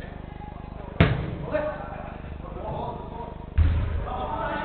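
A football is kicked with a hard thud.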